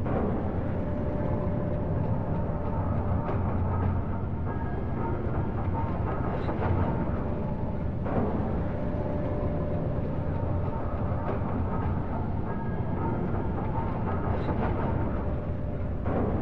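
A power grinder whirs and grinds steadily against metal.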